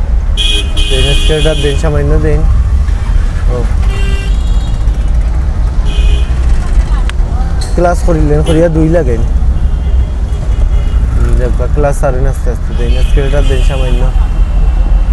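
Auto-rickshaw horns honk repeatedly nearby.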